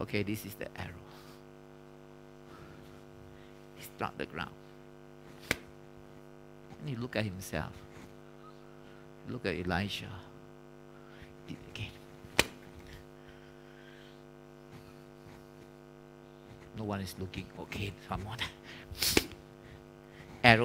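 A man speaks with animation into a microphone.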